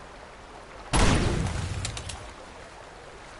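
A pistol fires a single loud shot that echoes away.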